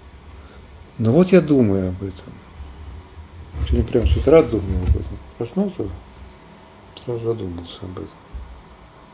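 A middle-aged man speaks calmly into a nearby microphone.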